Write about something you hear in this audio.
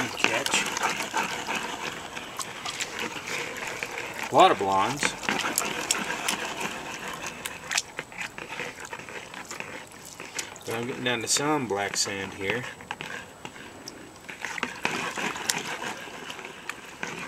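Water splashes and trickles back into a tub.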